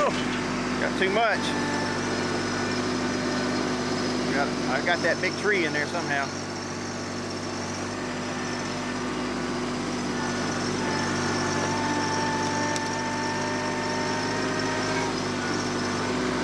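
A tractor engine hums steadily nearby.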